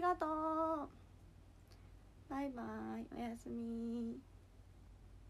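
A young woman sings short, drawn-out notes close to a microphone.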